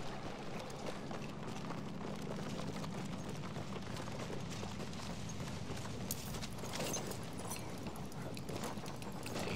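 Footsteps crunch quickly over rubble.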